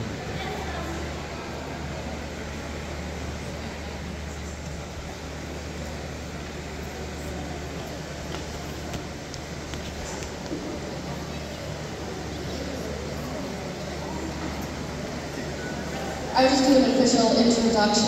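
A woman speaks calmly into a microphone, heard through loudspeakers in a large echoing hall.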